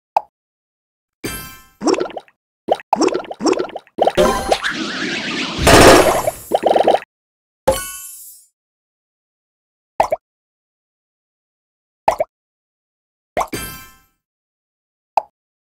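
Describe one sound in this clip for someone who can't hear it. Cartoon blocks pop with short bright chimes.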